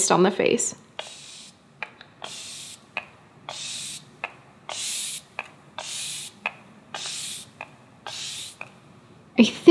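A young woman breathes slowly and deeply.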